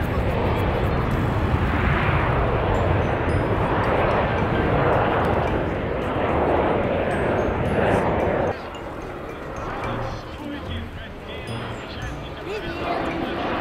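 A jet airliner's engines roar loudly overhead.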